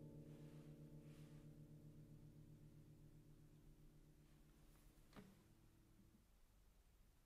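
A guitar chord rings out and slowly fades away.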